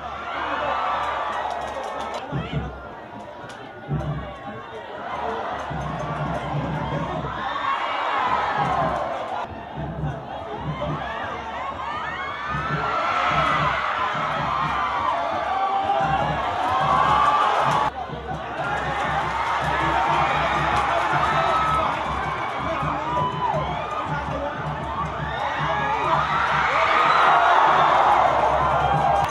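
A large crowd murmurs and cheers in an open stadium.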